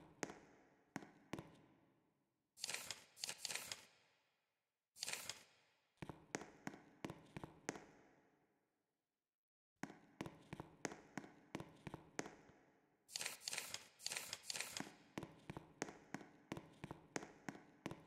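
Quick footsteps tap across a floor.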